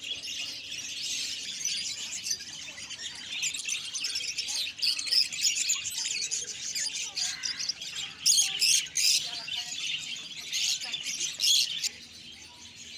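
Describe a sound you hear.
Many small parrots chirp and chatter loudly.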